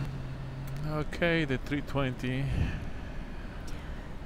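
A man speaks briefly and calmly through a headset intercom.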